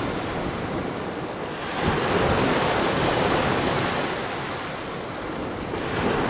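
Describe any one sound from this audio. Waves wash onto a rocky shore and swell in a rolling surge.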